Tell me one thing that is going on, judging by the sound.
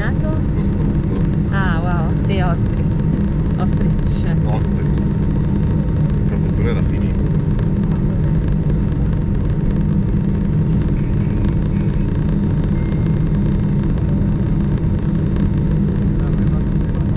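A jet airliner's engines rumble steadily inside the cabin as the plane taxis.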